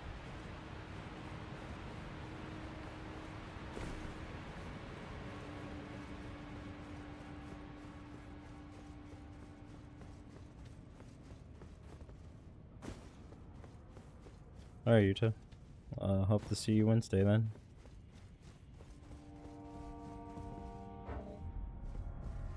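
Footsteps run quickly over a stone floor.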